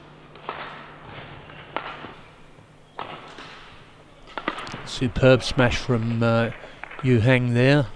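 A racket strikes a shuttlecock with sharp pops in a large echoing hall.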